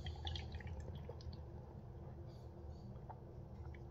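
A man gulps a drink.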